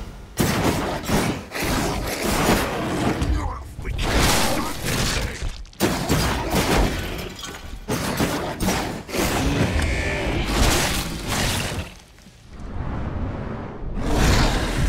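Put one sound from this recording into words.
Heavy blows and crashes thud in quick succession.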